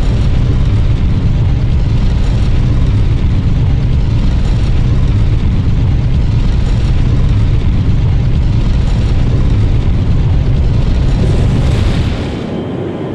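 A heavy stone lift rumbles steadily as it rises, then stops.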